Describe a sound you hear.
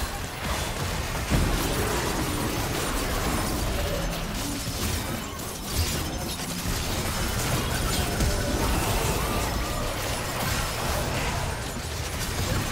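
Game spells and weapon strikes crackle and thud in a busy battle.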